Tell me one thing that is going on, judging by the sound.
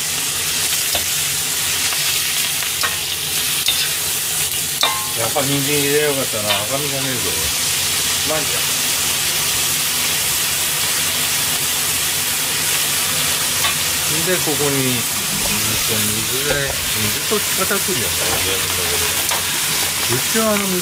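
Food sizzles steadily in a hot wok.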